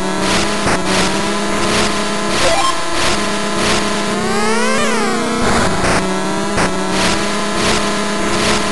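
Chiptune game music plays with a steady, bouncy beat.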